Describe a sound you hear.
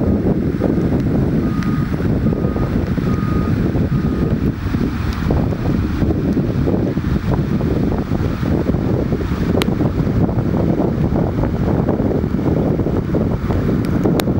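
Floodwater flows across a road outdoors.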